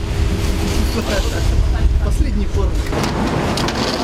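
Men talk nearby on a street.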